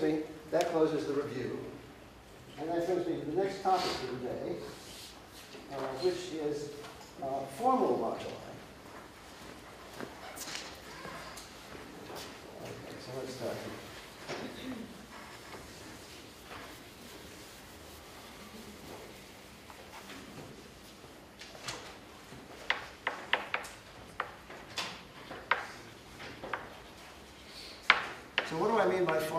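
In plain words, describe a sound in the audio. An elderly man lectures calmly into a microphone in a large hall.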